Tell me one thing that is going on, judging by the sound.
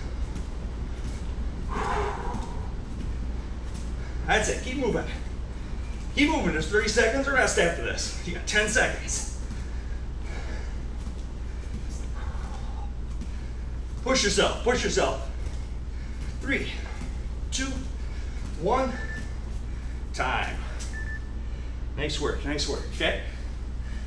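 Bare feet thump and shuffle on a padded mat.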